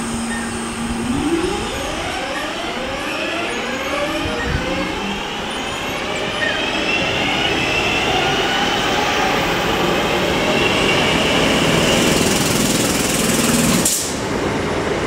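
A diesel train pulls away from a platform, its engine rising in pitch as it speeds up.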